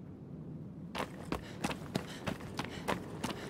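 Footsteps tap on a stone floor at a steady walking pace.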